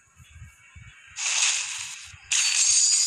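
A game's coin rings out with a bright metallic shimmer.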